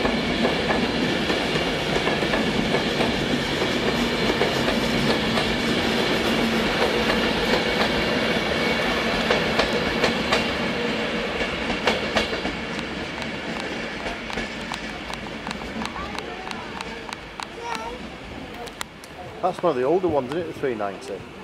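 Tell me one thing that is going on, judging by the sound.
An electric high-speed train rushes past close by and fades into the distance.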